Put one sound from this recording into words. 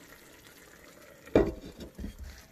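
A clay lid knocks down onto a clay pot.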